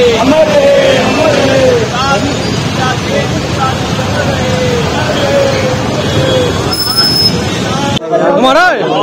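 A crowd of men chants loudly outdoors.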